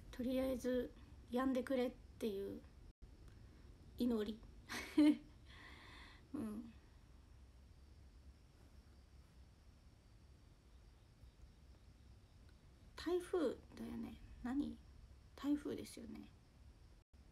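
A young woman speaks softly and casually close to a microphone.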